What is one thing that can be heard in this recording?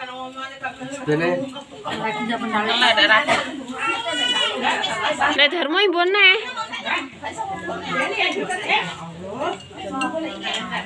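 Several women and children chat and talk over each other close by.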